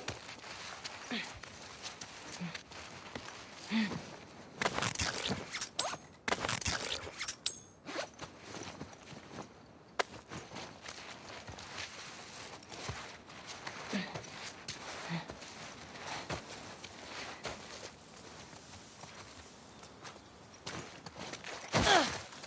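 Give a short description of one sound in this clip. Footsteps rustle softly through grass and dry leaves.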